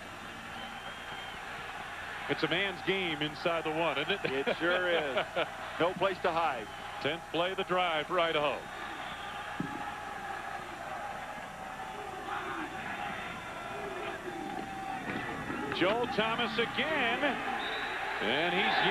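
A stadium crowd murmurs and cheers in the background.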